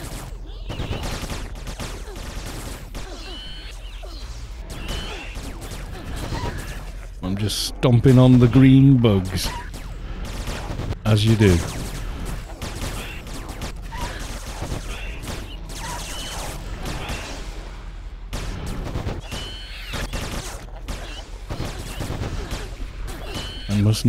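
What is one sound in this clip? Crackling, whooshing game spell effects play throughout.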